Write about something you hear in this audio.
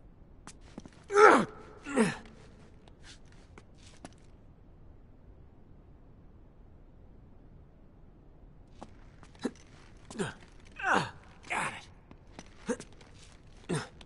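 Hands grab and scrape on stone while climbing.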